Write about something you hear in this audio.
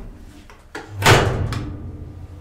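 A button clicks as it is pressed.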